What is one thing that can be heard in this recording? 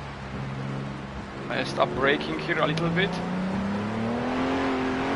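A racing car engine drones steadily and slowly rises in pitch.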